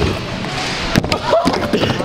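A scooter deck clatters against the ramp.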